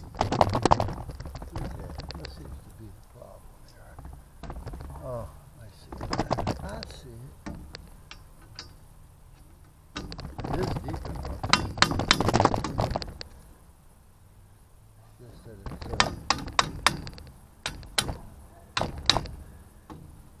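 A hand tool scrapes and clinks on metal close by.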